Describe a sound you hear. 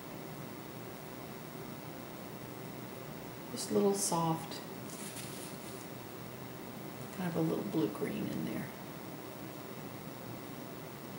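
A paintbrush dabs and strokes softly against canvas.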